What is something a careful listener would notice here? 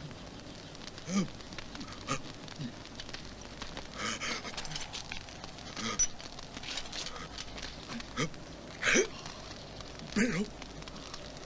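An elderly man groans in pain.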